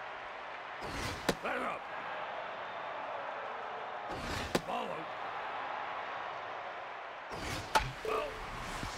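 A baseball smacks into a catcher's mitt several times.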